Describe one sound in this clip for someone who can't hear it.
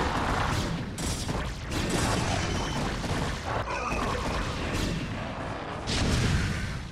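Rapid electronic zaps and blasts of a fierce battle crackle loudly.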